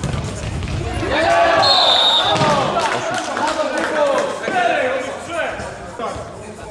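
Players shout to each other across an echoing hall.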